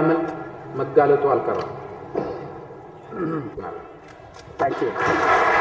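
A man speaks into microphones.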